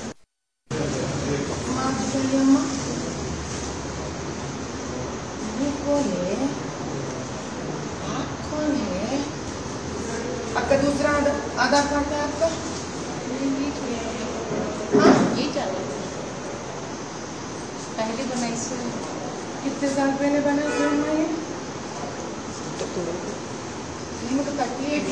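Several people murmur and talk in the background.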